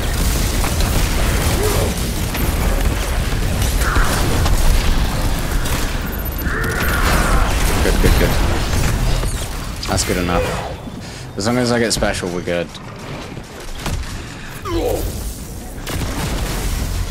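Gunfire and explosions boom and crackle in a fast battle.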